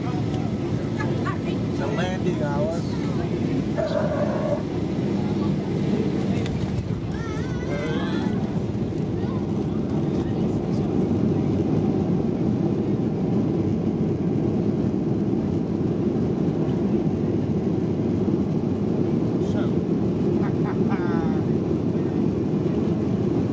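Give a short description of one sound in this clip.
Aircraft wheels rumble along a runway.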